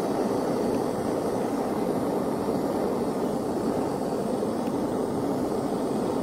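A gas torch roars steadily close by.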